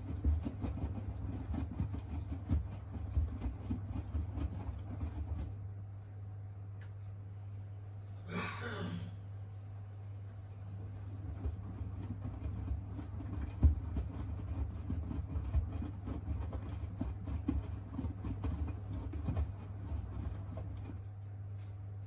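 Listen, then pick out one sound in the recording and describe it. Wet laundry tumbles and sloshes in a washing machine drum, pausing now and then.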